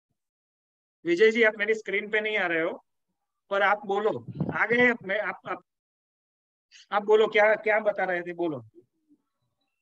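A man speaks calmly through an online call, in bursts with pauses.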